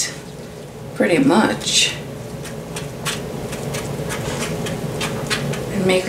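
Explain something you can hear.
A knife scrapes softly through batter in a metal pan.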